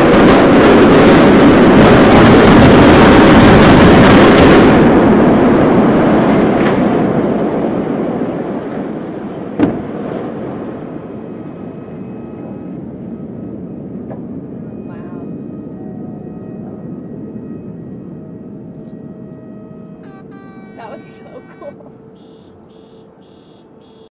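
A huge building collapses with a long, heavy rumble that slowly fades.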